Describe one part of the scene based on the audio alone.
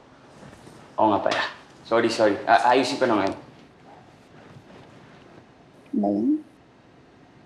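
A young man answers up close, in a low, uneasy voice.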